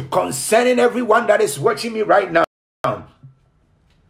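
A man speaks with strong emotion, heard close through a computer microphone.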